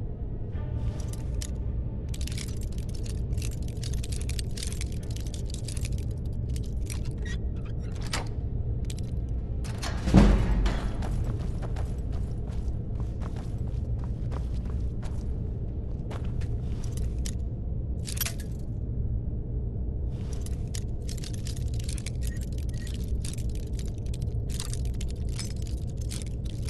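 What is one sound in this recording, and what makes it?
A metal lock pick scrapes and clicks inside a lock.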